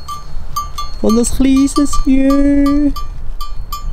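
A sheep bleats loudly nearby.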